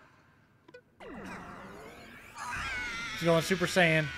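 A video game attack whooshes and rumbles.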